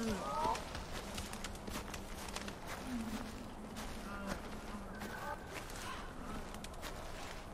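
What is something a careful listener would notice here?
A small bird chirps in short bursts.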